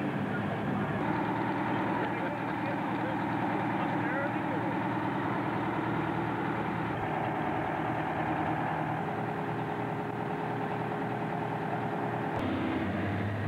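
A large old engine runs with a steady, chugging hum.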